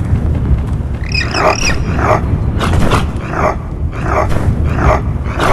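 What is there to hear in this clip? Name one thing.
A penguin squawks in sharp repeated cries.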